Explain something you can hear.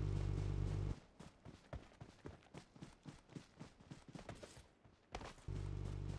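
Footsteps thud quickly on soft ground.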